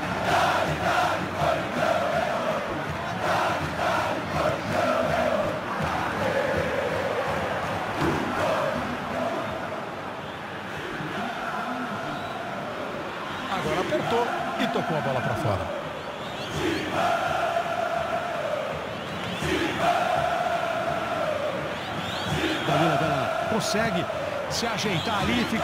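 A large stadium crowd chants and roars steadily.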